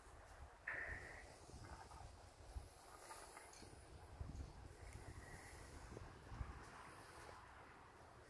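A dog's paws pad softly on dry dirt.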